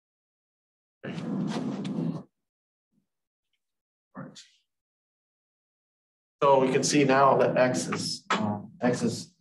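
A man lectures calmly into a close microphone, in short bursts between pauses.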